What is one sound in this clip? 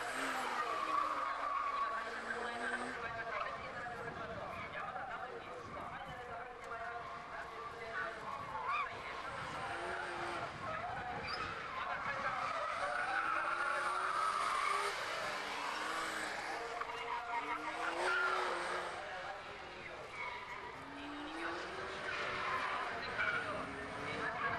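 A race car engine revs hard, rising and falling as the car slides through corners.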